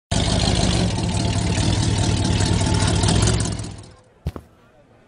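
A truck engine rumbles loudly.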